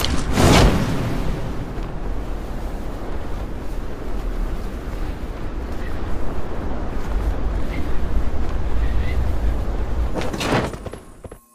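Wind rushes steadily past a parachute descending.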